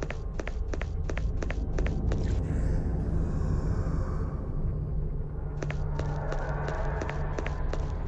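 A low rumble drones steadily.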